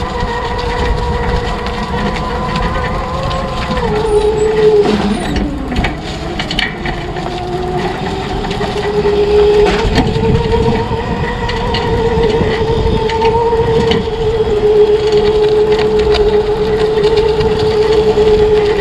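A go-kart engine drones loudly, its pitch dipping and rising as it slows and speeds up.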